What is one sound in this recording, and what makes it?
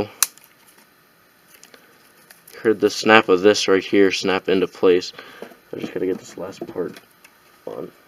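Plastic parts click and rattle as they are handled.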